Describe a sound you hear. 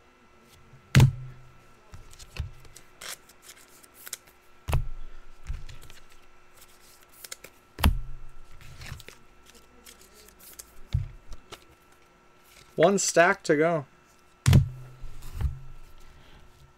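Cards are set down on a table with soft thumps.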